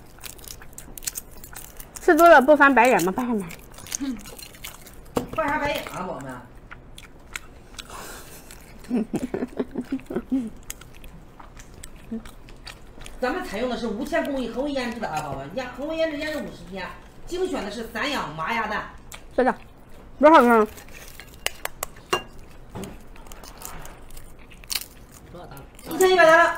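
Eggshells crack and crinkle as a young woman peels them.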